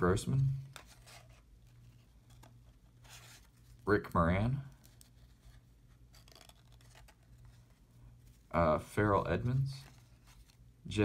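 Trading cards slide and rustle softly against each other.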